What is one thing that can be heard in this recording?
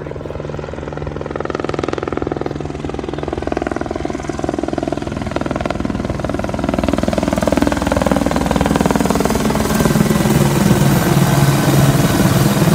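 A helicopter's rotor thumps rapidly as it approaches and passes low overhead, growing louder.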